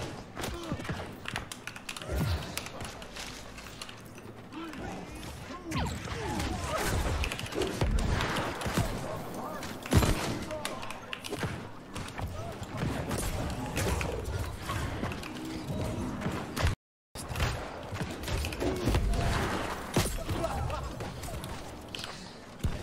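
Magic blasts and spell impacts crackle and burst repeatedly during a fight.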